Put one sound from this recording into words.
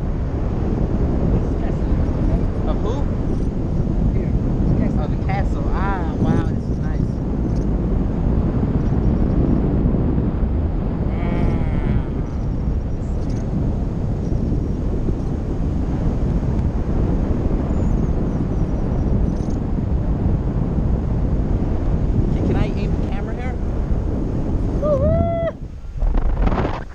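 Wind rushes loudly past a microphone.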